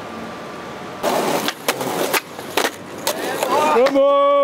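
A skateboard clatters and rolls on concrete.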